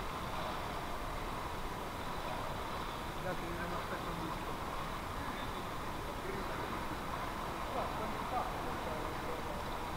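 Water rushes and burbles steadily underwater.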